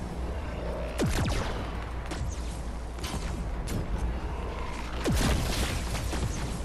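Energy blasts whoosh with a sharp falling tone.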